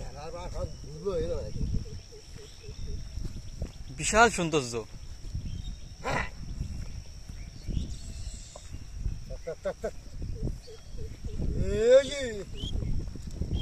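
A man calls out loudly to oxen.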